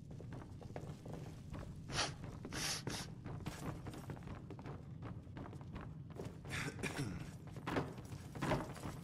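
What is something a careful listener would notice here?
Armored footsteps thud on wooden floorboards.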